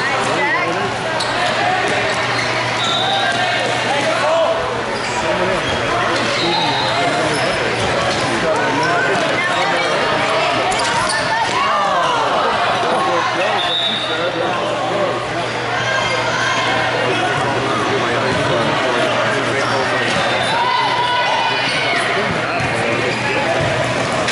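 Many voices of boys and spectators shout and chatter throughout a large echoing hall.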